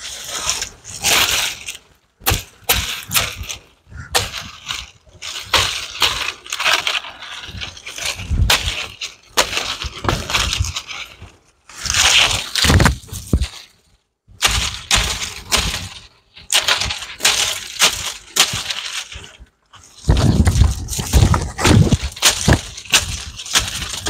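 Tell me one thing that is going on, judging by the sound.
Dry palm leaves rustle and crackle close by.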